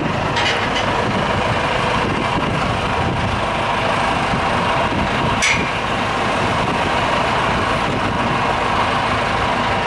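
A tractor engine idles with a low rumble.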